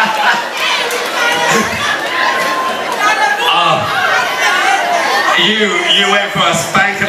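A large crowd of men and women chatter and call out all around.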